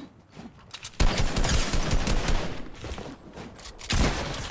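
A gun fires several shots.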